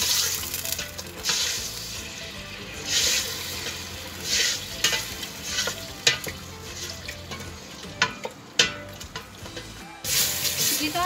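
A spoon stirs and scrapes inside a metal pot.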